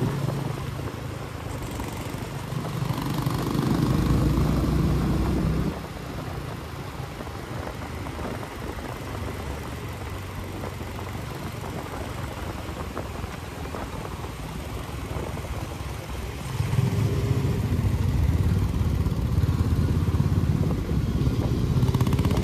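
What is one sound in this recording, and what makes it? A motorcycle engine rumbles steadily while riding, rising and falling with the throttle.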